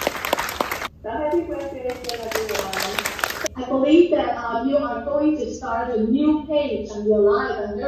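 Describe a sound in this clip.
A woman speaks calmly through a loudspeaker from an online call.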